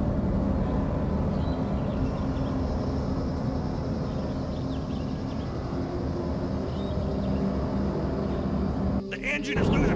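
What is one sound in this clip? A hovering craft's engine hums and roars steadily.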